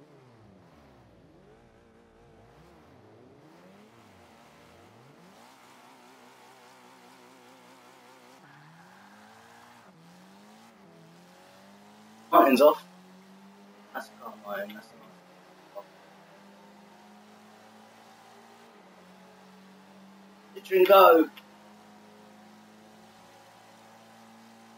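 Racing car engines roar and rev up and down.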